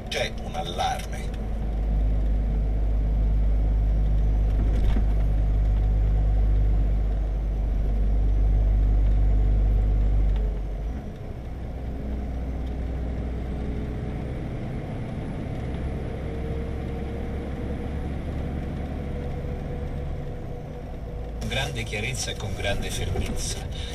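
A vehicle engine hums steadily while driving along a road.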